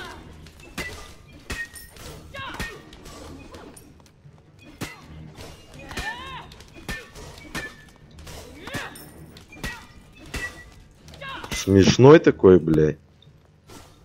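Sharp game combat hits and magic blasts ring out in quick bursts.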